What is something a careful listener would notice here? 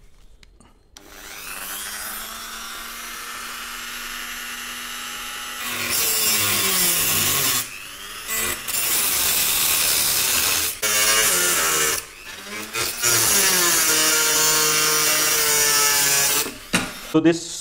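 A small rotary cutting tool whines at high speed.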